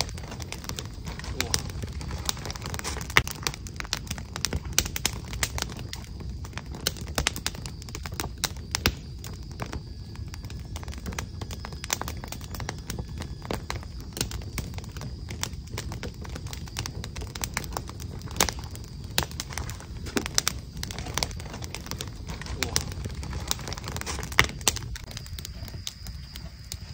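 A pen scratches and taps on paper close by.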